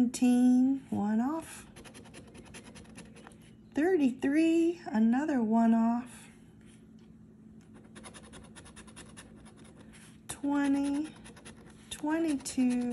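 A coin scratches rapidly across a scratch-off ticket.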